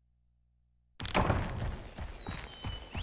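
Footsteps run quickly over soft, leafy ground.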